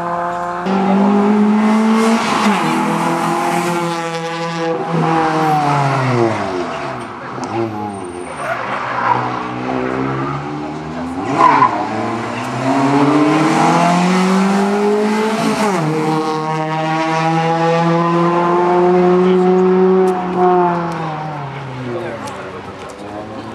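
A rally car engine revs hard and roars past, rising and falling in pitch.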